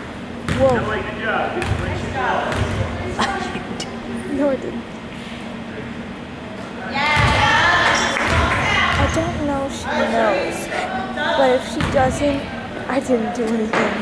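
Young women shout and call out in a large echoing gym.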